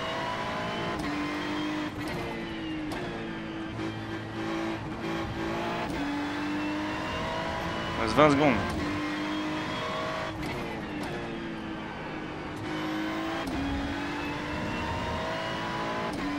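A racing car engine roars at high revs, rising in pitch and dropping sharply with each gear change.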